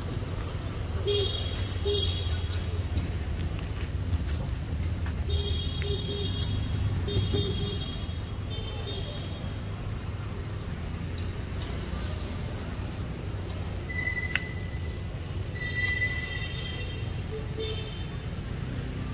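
A young monkey squeaks in short high bursts.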